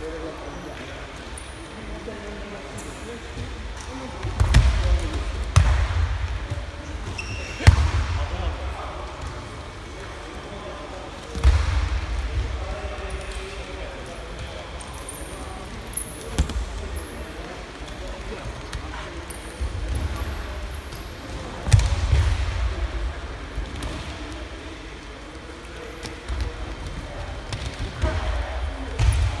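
Bare feet squeak and shuffle on mats.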